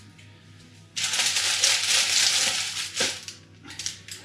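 Foil crinkles and rustles.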